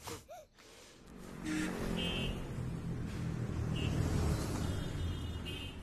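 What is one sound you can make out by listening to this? Traffic hums steadily on a city road.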